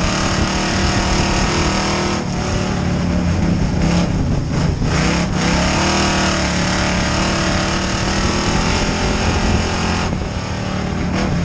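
A race car engine roars loudly close by, rising and falling in pitch as it revs.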